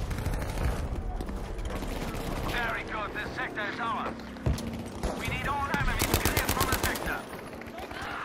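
Gunfire rattles in quick bursts nearby.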